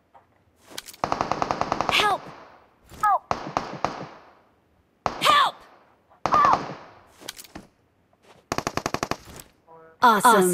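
Rapid bursts of automatic gunfire ring out.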